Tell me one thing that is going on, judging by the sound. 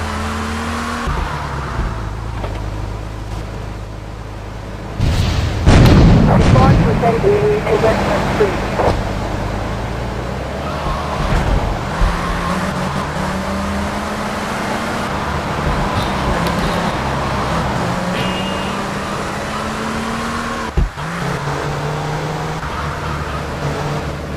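A sports car engine roars as the car accelerates.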